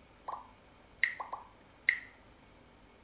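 A mobile game plays two short, sharp chimes.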